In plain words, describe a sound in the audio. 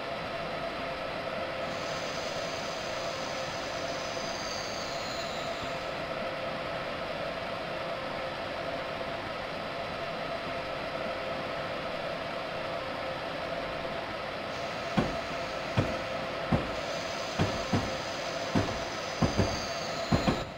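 A train hums steadily as it rolls along the tracks.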